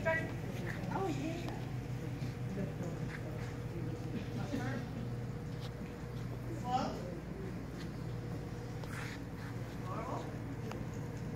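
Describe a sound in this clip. A woman gives short commands to a dog, heard at a distance in a large echoing hall.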